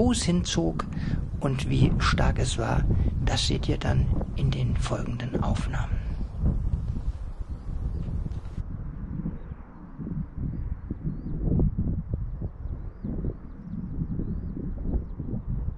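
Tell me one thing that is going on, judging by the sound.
Wind gusts and buffets across open ground outdoors.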